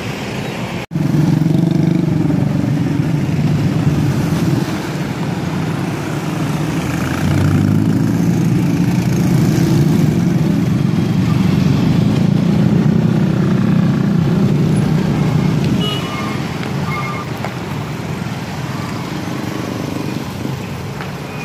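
Motorcycles rev and ride past close by.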